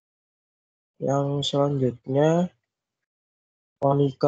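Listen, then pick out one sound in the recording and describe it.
A man speaks over an online call in drawn-out, sing-song phrases.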